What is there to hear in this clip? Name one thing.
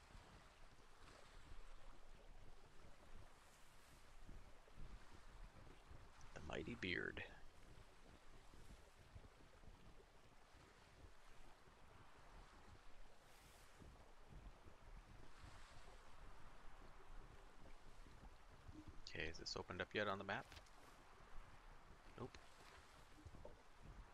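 Wind blows steadily over open water.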